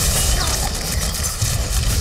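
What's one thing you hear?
Flames roar from a fiery blast.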